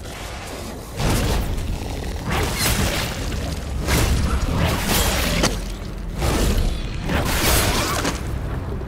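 A creature screeches and snarls up close.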